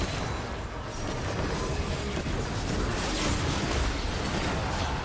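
Magic spells crackle and burst in a hectic fantasy battle.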